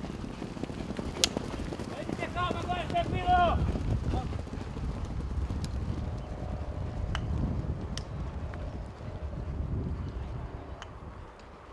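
Horses' hooves thud on turf as they gallop.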